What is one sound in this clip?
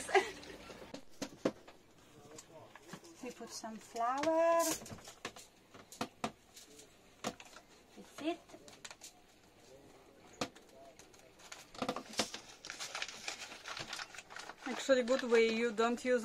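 Foil crinkles and rustles.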